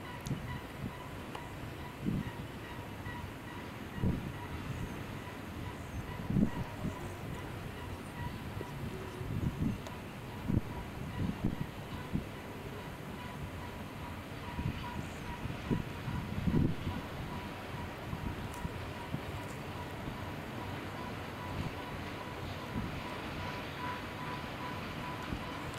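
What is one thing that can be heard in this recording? Diesel locomotives rumble and drone as a long freight train rolls past.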